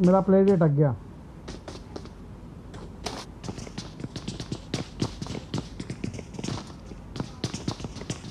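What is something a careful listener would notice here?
Footsteps patter quickly on hard floors and stairs.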